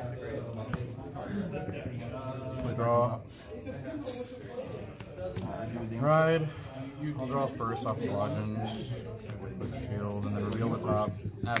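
Playing cards are laid down softly on a table mat.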